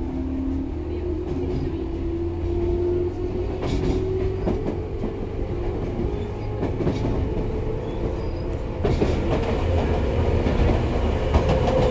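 An electric train approaches with a rising motor whine.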